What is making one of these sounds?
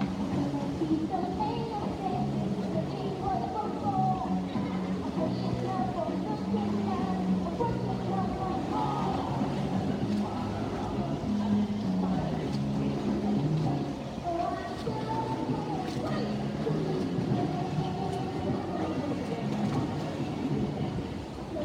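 Swimmers splash and kick through the water.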